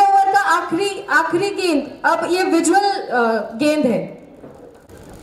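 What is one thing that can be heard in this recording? A woman sings loudly through a microphone and loudspeaker.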